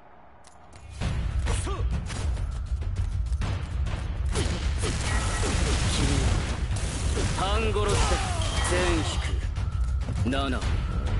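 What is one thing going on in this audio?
Sharp blows and slashing thuds of combat ring out loudly.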